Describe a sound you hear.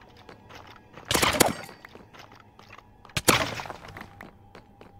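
A sword strikes a skeleton with sharp hits.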